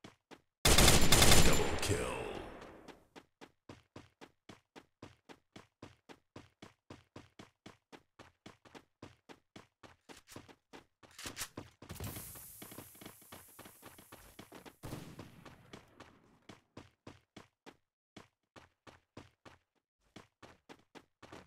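Footsteps patter quickly on stone as a game character runs.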